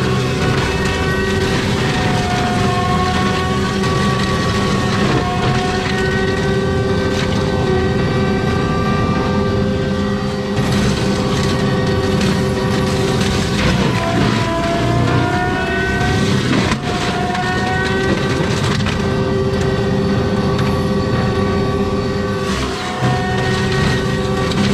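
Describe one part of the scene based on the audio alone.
A mulcher head whines and grinds through brush.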